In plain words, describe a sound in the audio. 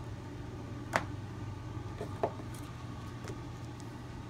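Thin books knock softly against each other as they are handled.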